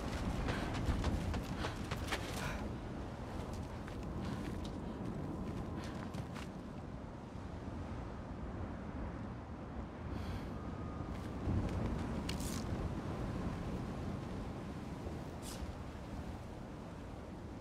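Wind howls steadily through a cave.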